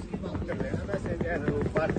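Suitcase wheels rattle over cobblestones.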